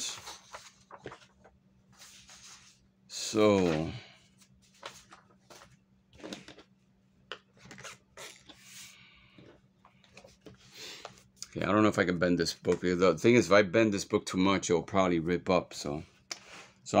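Paper rustles and slides as sheets are handled close by.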